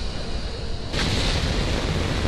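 A rocket engine roars with a deep, steady thunder.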